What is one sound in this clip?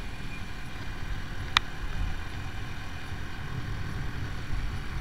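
A motorcycle engine rumbles steadily while riding along a road.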